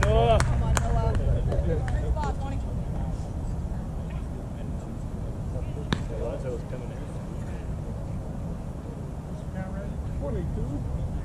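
Young men shout and call out across the field in the distance.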